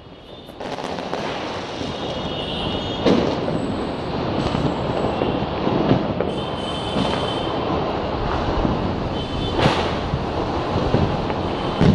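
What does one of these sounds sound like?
Fireworks bang in the distance, again and again.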